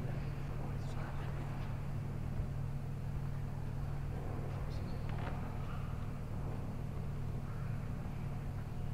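A man speaks quietly, heard through a microphone.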